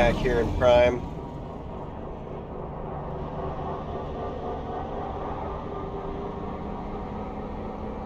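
A low engine hum drones steadily.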